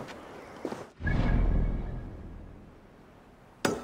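A deep whoosh swells and fades.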